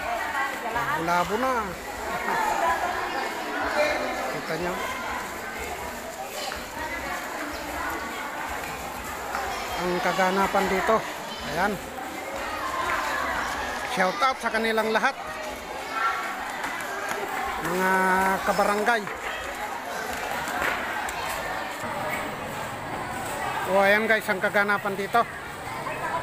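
A crowd of men and women chatters all around under a large echoing roof.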